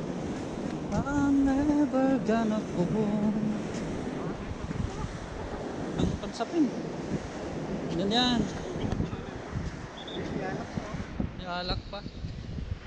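A man speaks close by, calmly.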